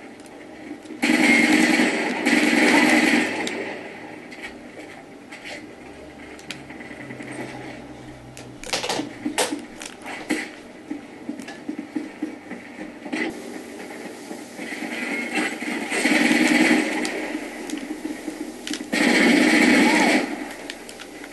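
Bursts of gunfire rattle loudly through a small loudspeaker.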